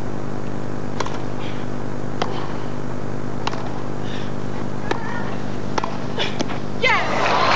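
Tennis balls are struck sharply back and forth with rackets.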